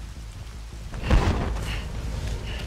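A blade swings through the air with a loud whoosh.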